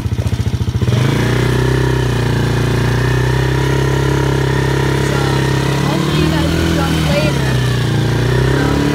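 A quad bike engine roars steadily as the bike drives along.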